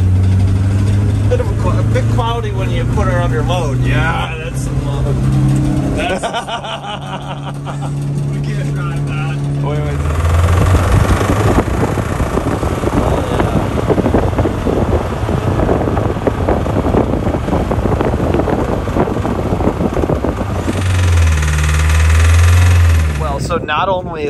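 An old engine idles and rumbles unevenly.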